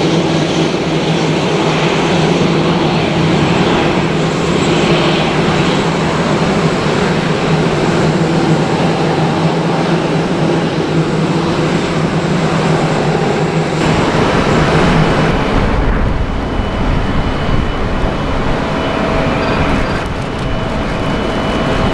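A jet airliner's engines whine and roar steadily as the plane taxis close by.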